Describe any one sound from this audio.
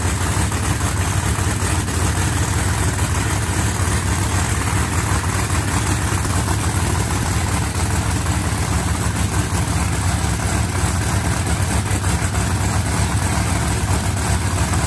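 A race car engine idles loudly with a deep, rough rumble.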